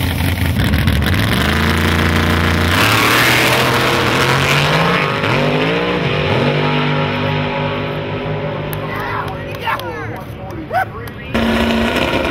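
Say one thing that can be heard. A race car engine roars and climbs in pitch through its gears as the car speeds away.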